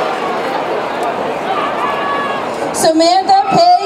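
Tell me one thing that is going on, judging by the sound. A crowd cheers and claps outdoors.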